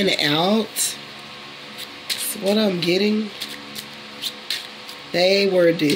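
Hands shuffle and tap a deck of cards.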